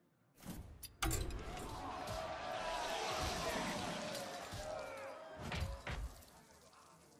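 Heavy game doors swing open with a loud rumbling whoosh.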